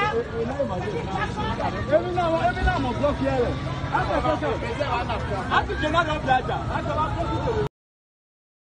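A crowd of men shouts and yells outdoors.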